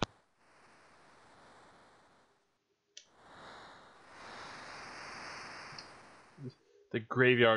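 Waves wash and hiss softly.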